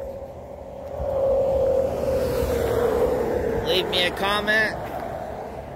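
A vehicle drives past on a nearby road.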